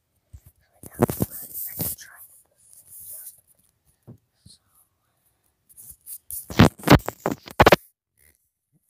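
A young child talks loudly and excitedly, very close by.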